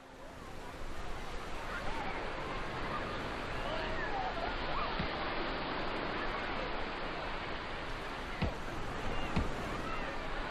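Children shout and laugh excitedly.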